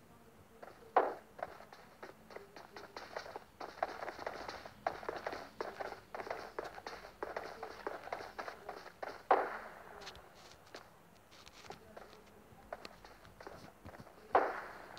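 Footsteps walk across a floor.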